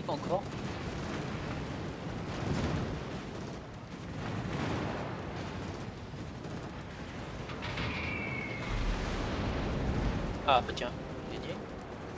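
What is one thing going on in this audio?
Shells splash into the sea.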